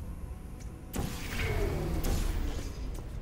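A game gun fires with a loud electronic whoosh.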